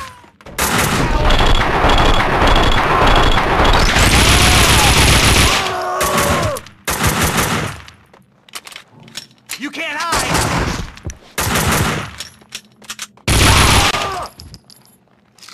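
Guns fire loudly in rapid bursts.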